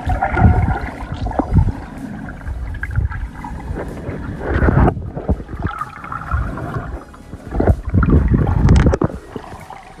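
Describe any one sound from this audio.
Water gurgles and rushes in muffled bursts close to an underwater microphone.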